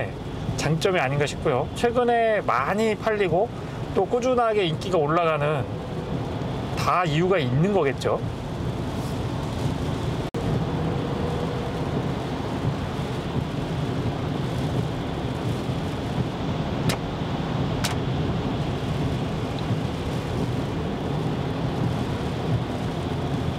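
A car drives steadily, with a low rumble of tyres on a wet road.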